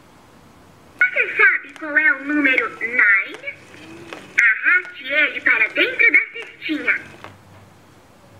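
A young boy talks in a high, lively voice close by.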